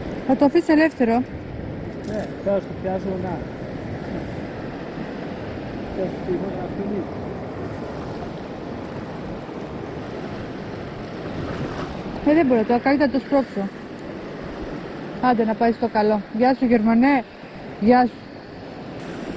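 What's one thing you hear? Small waves lap gently against the shore.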